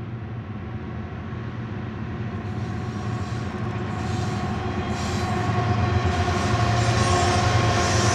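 Diesel locomotive engines rumble loudly as they approach and pass close by.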